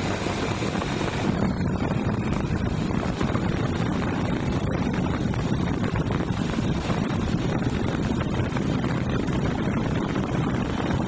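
A motorbike engine drones steadily up close.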